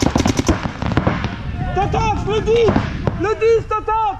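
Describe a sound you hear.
A paintball marker fires.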